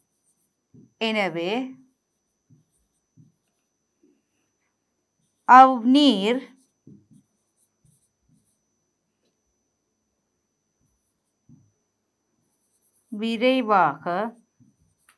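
A woman speaks calmly into a close microphone in short phrases with long pauses.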